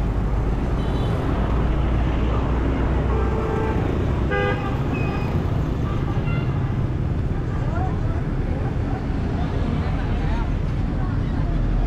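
Motorbikes and traffic rumble by steadily.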